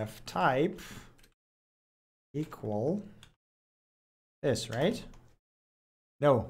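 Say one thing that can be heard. A young man speaks calmly and close into a microphone, in short bursts with pauses.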